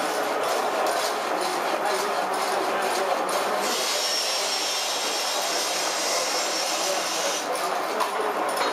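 Old machinery rumbles and clatters steadily.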